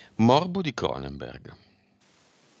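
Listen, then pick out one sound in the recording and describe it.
A man speaks briefly and calmly into a headset microphone, heard as on an online call.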